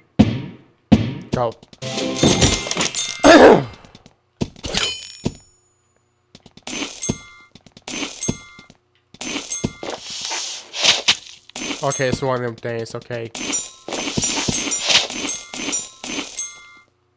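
Game sound effects chime and jingle as coins and treasure are collected.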